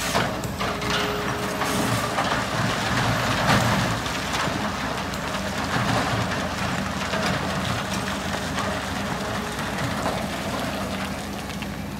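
Rocks crash and rattle into a truck bed.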